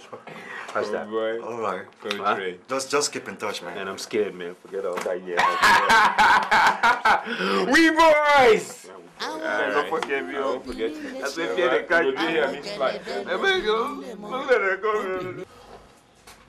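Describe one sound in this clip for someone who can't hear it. Several men talk loudly and with animation close by.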